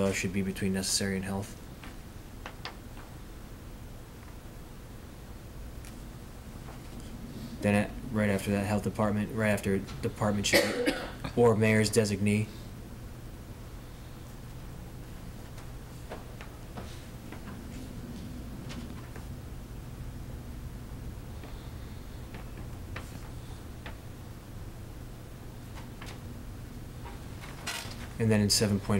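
A man speaks calmly into a microphone in a room with a slight echo.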